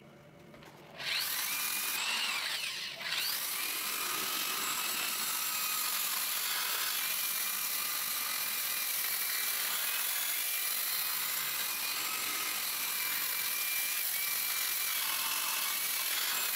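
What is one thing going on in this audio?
An electric grinder whirs steadily at high speed.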